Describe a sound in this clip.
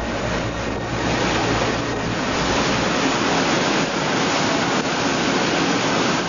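Wake water churns and rushes loudly behind a ship.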